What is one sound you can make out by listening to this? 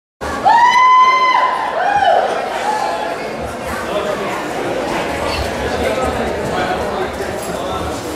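A woman sings into a microphone, heard through loudspeakers in an echoing room.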